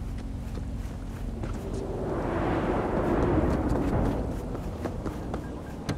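A car engine roars as the car drives off.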